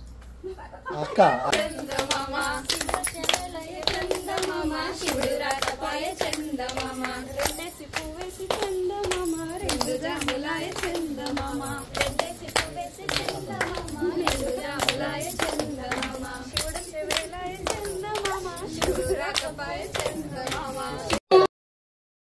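Women sing together in a tuneful chant.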